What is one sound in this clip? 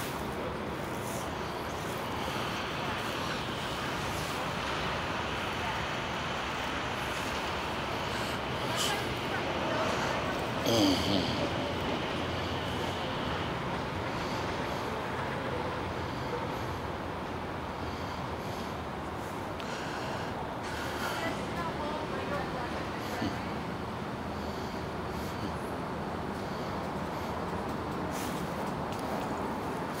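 A car engine idles close by.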